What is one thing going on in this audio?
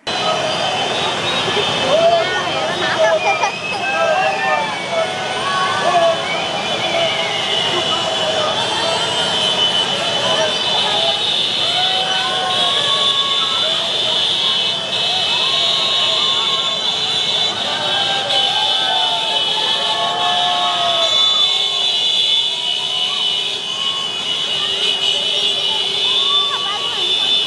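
Many motorcycle engines rumble as the riders roll slowly past.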